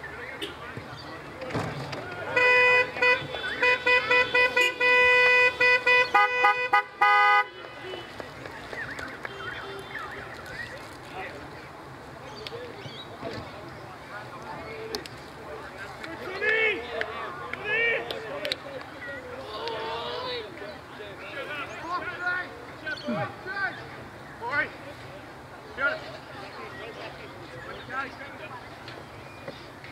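Men shout to each other across an open field, far off.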